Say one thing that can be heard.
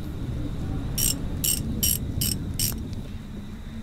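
A wrench clicks as it turns a bolt.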